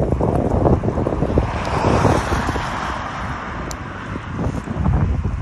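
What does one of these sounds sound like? A van drives past nearby.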